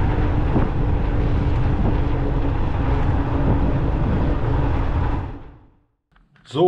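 Wind rushes loudly over the microphone while riding outdoors.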